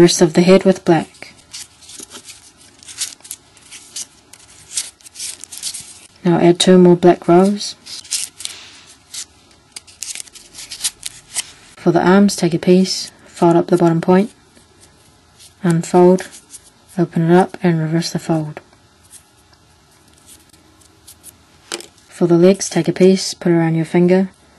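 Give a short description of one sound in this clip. Stiff paper rustles and crinkles as hands fold it.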